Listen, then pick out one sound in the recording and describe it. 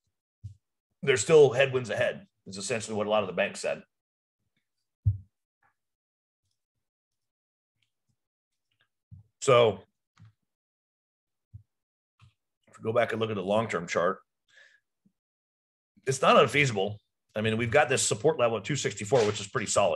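A middle-aged man talks calmly into a close microphone, with pauses.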